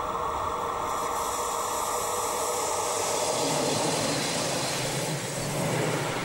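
Train wheels rumble and clatter on the rails as the train passes close by.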